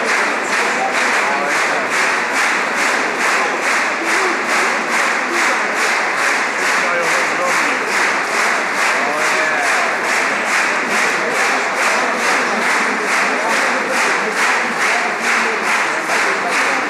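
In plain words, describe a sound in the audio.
A large crowd chants in a steady rhythm in an echoing hall.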